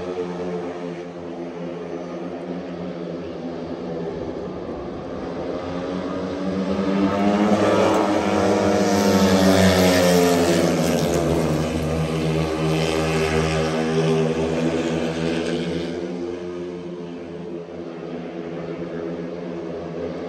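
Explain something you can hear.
Racing motorcycle engines roar loudly as the bikes speed past and fade away.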